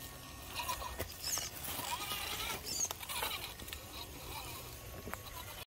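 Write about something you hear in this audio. Hard rubber tyres scrape and click over rock.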